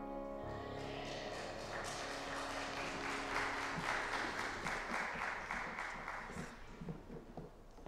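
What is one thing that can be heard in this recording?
An audience claps and applauds in a large echoing hall.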